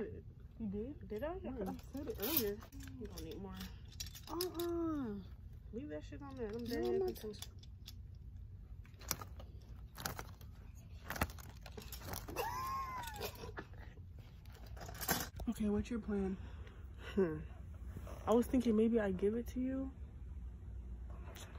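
Clothes hangers click and scrape on a rack.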